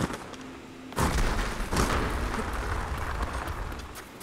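Rock crumbles and collapses with a rumble.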